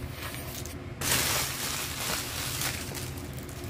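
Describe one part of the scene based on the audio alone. Paper gift bags rustle and crinkle as they are moved.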